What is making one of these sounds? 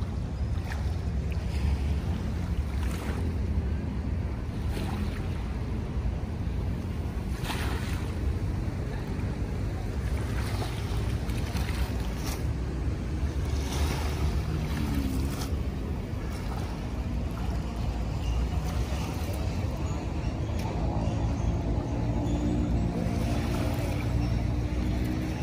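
Water splashes softly as a person wades through the shallows.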